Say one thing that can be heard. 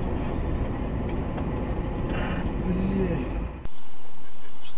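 Tyres roll noisily over a wet road.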